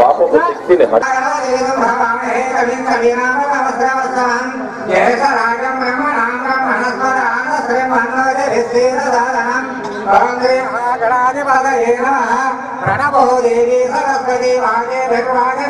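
A man chants steadily through a microphone.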